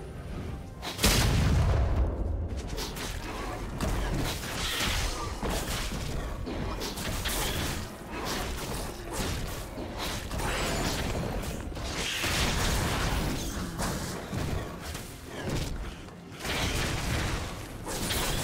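Magic blasts and weapon strikes crash and whoosh during a fast fight.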